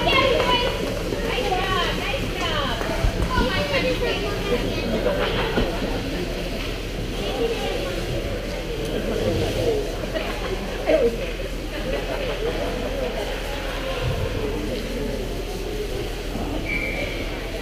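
Skate blades scrape across the ice.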